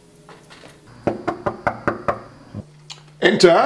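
A fist knocks rapidly on a door.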